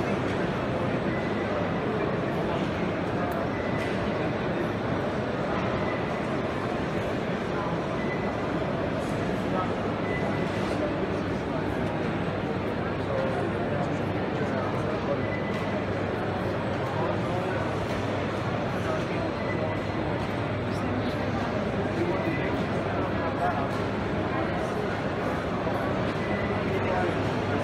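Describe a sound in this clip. A crowd of people chatter in a large echoing hall.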